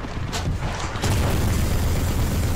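A loud explosion booms and crackles.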